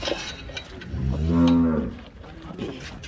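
A cow moos loudly close by.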